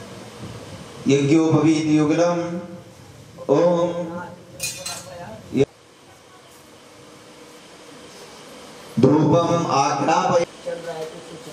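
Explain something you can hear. A man chants in a loud, steady voice nearby.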